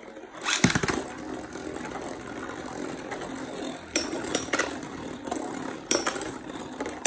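Spinning tops whir and grind across a plastic dish.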